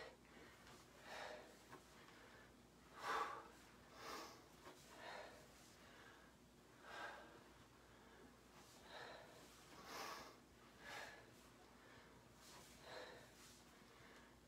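A woman breathes out hard in rhythm while exercising.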